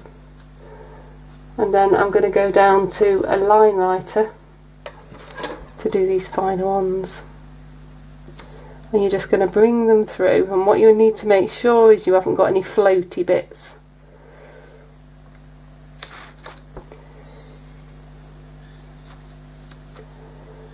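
A paintbrush dabs and strokes softly on paper.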